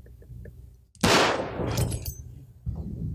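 A revolver fires a loud shot that echoes.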